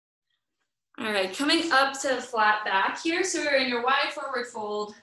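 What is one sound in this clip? A woman gives calm instructions through an online call.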